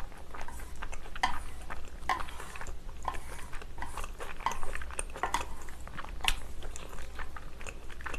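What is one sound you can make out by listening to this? Chopsticks clink against a metal tray.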